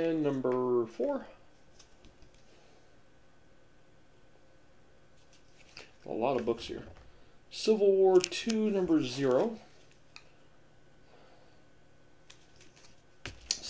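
Paper and comic books rustle as they are handled.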